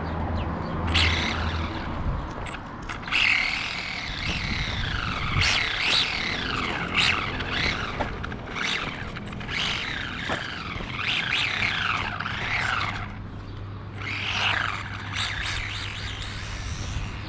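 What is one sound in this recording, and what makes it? A small electric motor whines, rising and falling in pitch as a toy car speeds up and slows down.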